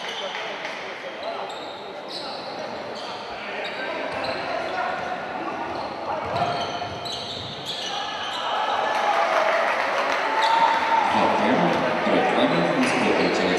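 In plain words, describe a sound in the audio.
A crowd cheers and shouts in a large echoing hall, growing louder.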